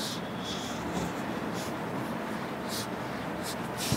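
A board eraser rubs across a whiteboard.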